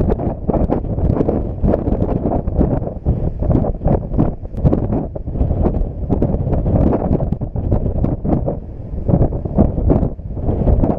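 Strong wind gusts and buffets outdoors.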